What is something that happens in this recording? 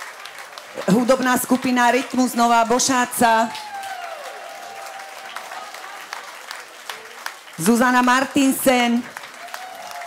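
A woman sings into a microphone with a lively tone.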